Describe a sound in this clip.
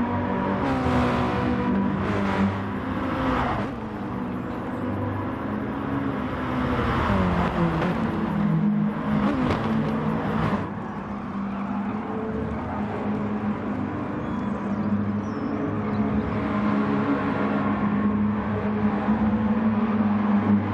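A racing car engine roars steadily, shifting pitch as it revs up and down through the gears.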